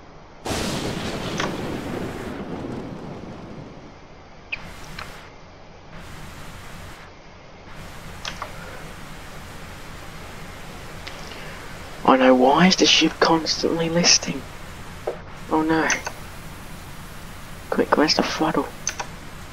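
Rain falls steadily on water.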